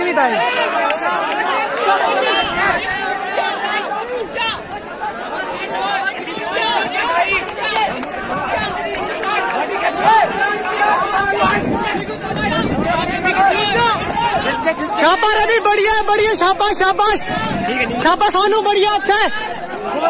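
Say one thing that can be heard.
Running feet thud on packed dirt as runners pass close by.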